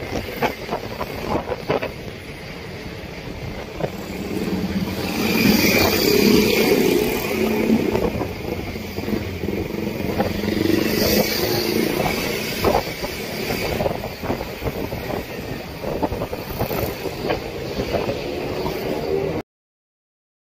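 Motorbike engines hum past on a busy street.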